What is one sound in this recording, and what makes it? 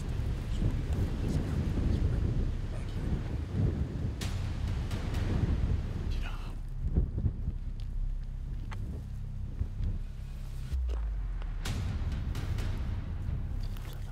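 Boots crunch on dry grass and stones as a man walks.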